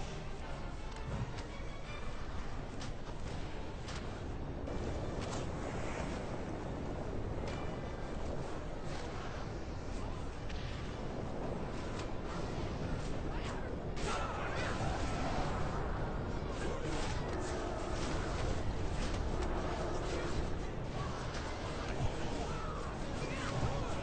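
Magic impacts crack and thud again and again.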